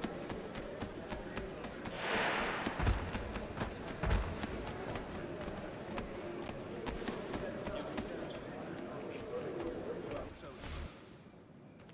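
Bare feet patter quickly on wooden floorboards.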